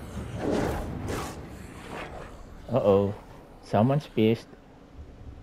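A large beast snarls and growls.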